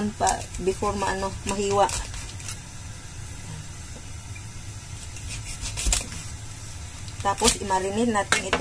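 A large knife scrapes and taps against a wooden cutting board.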